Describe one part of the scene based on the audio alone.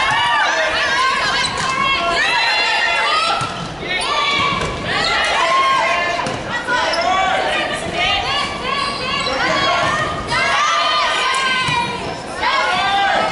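A volleyball is hit with a sharp slap.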